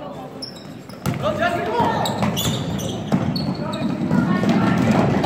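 A basketball bounces on a wooden floor, echoing through a large hall.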